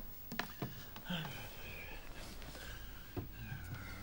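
Bedsheets rustle as a man climbs into bed.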